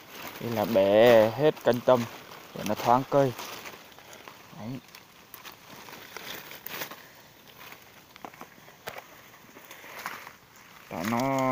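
Leaves rustle as a hand pushes through a shrub.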